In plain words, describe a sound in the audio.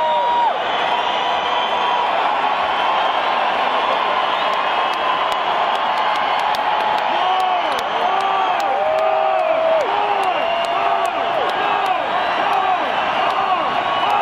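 Many people in a crowd whistle shrilly, their whistles rising and falling.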